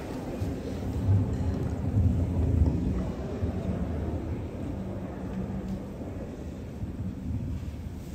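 A choir of young men and women sings together in a large echoing gym.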